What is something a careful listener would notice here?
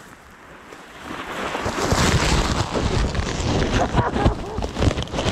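A bubble wrap sled crashes into the microphone, rustling and thumping.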